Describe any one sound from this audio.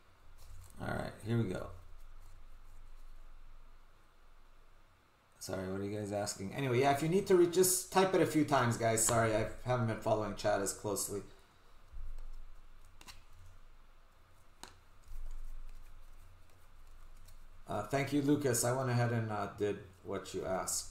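Stiff cards slide and flick against each other in someone's hands.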